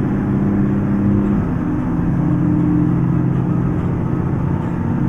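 A bus engine drones steadily while driving.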